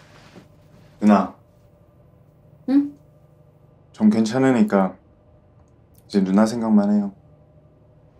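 A young man speaks in short, calm phrases close by.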